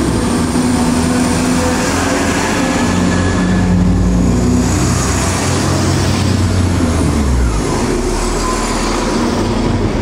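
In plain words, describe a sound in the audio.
A passenger train rolls past close by with a loud rushing and rumbling.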